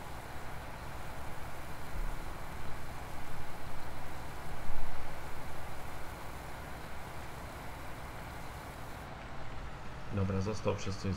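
A tractor engine hums steadily at idle.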